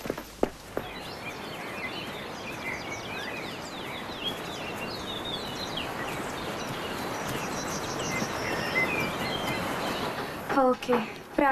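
Birds chirp outdoors over a soft rush of noise.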